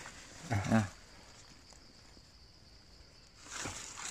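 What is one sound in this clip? Mushrooms drop softly into a woven basket.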